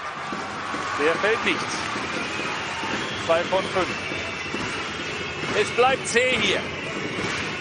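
Basketball sneakers squeak on a hardwood court.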